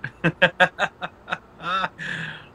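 A young man laughs heartily close to a phone microphone.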